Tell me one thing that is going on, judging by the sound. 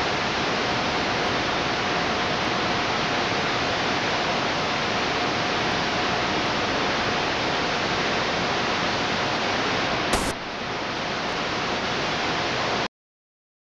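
Loud static hisses steadily, then cuts off.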